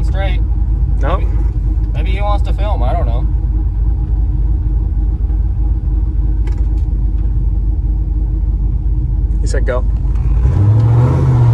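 A turbocharged V8 pickup truck idles with a low rumble.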